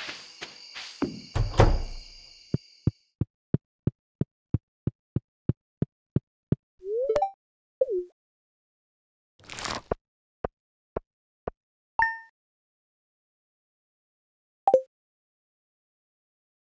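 A hoe strikes the soil with a dull thud.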